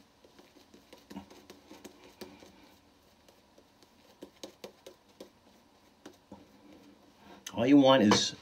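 A razor scrapes across stubble.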